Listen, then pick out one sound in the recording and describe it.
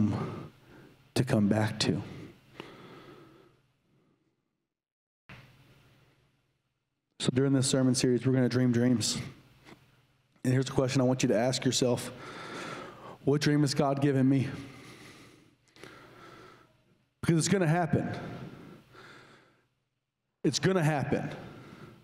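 A man speaks with animation into a microphone, heard over a loudspeaker in a large echoing room.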